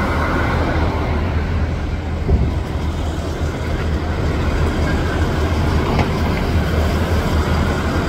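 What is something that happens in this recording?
A bus engine hums as it drives past.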